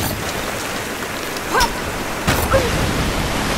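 A climbing axe strikes hard rock.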